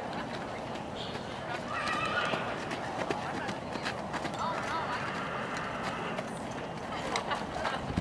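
A horse's hooves clop on gravel as it trots.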